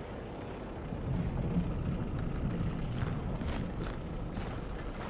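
A fire roars close by.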